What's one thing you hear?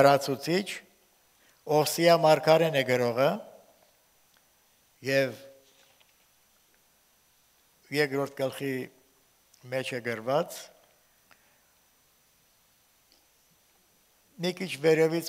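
An elderly man reads aloud slowly through a microphone, pausing between phrases.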